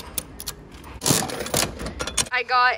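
A plastic capsule drops and clunks into a metal chute.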